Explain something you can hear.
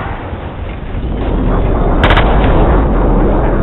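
A jet engine roars nearby.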